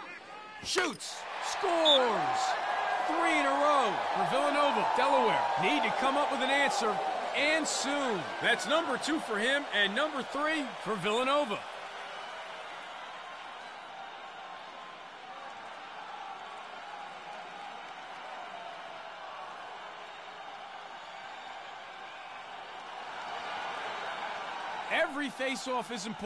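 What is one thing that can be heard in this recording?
A stadium crowd murmurs and cheers steadily.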